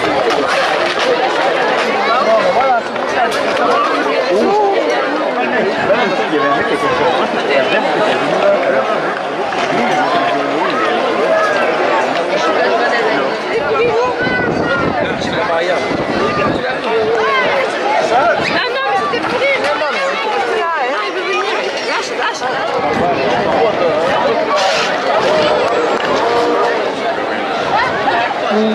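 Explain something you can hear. A large outdoor crowd shouts and chatters loudly.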